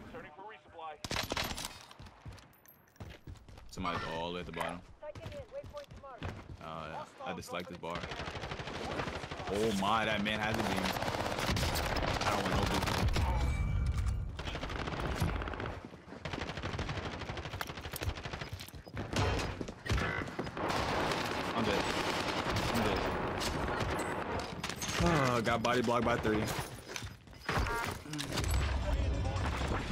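Gunfire from a video game crackles in rapid bursts.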